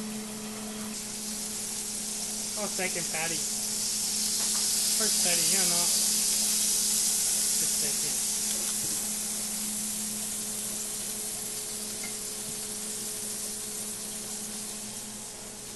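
Meat sizzles loudly on a hot griddle.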